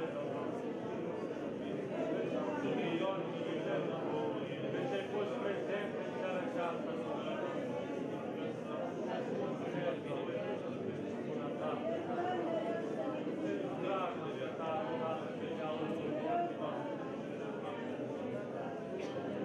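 A crowd of men and women pray aloud together in an echoing hall.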